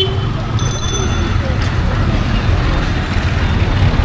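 A motor rickshaw engine putters nearby.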